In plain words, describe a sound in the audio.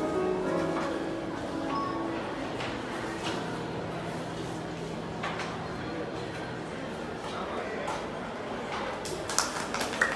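A piano plays a gentle melody in a large echoing hall.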